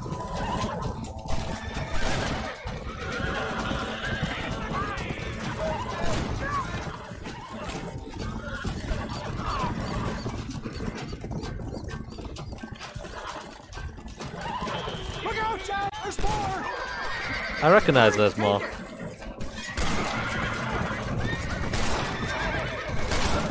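A wagon rattles and creaks as it rolls.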